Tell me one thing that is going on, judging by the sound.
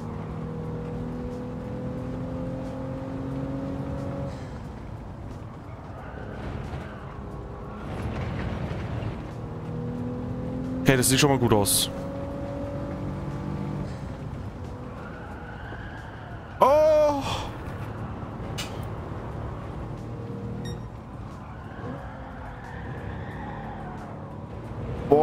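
A racing car engine drones and changes pitch as the car speeds up and slows down.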